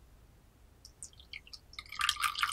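Tea pours and splashes into a porcelain cup.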